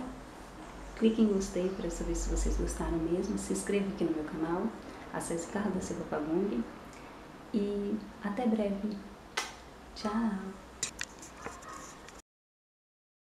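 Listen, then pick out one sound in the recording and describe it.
A young woman talks calmly and close to the microphone.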